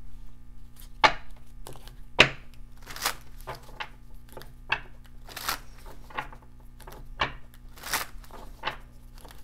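A deck of cards is shuffled with quick crisp riffles.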